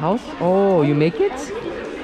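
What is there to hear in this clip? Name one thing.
A plastic bag crinkles in a hand.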